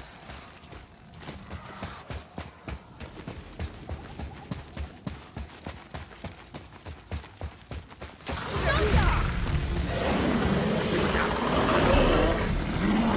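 Heavy footsteps run quickly over stone.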